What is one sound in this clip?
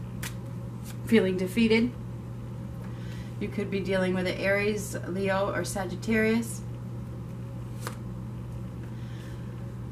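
Playing cards are laid softly on a table one at a time.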